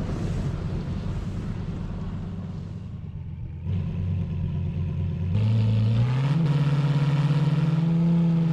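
A sports car engine idles, then revs higher as the car speeds up.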